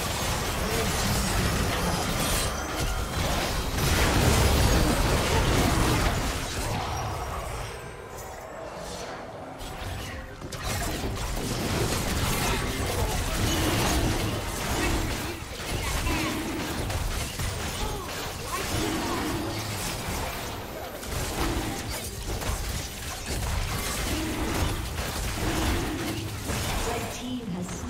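Spell effects whoosh and crackle as game characters fight.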